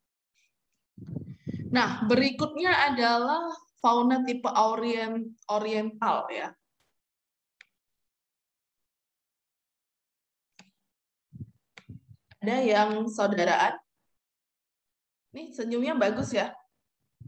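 A woman speaks calmly through an online call, explaining in a lecturing tone.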